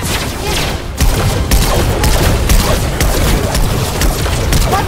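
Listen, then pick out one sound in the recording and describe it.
Heavy punches land with loud, quick thuds.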